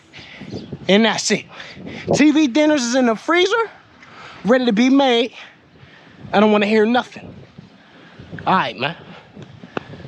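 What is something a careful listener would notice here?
A young man talks animatedly close to the microphone.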